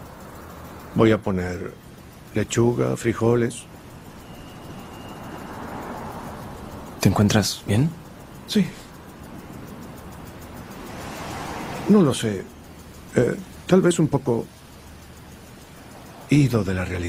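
An older man speaks calmly and close by, in short phrases with pauses.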